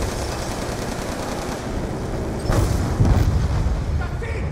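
An automatic turret fires rapid gunshots.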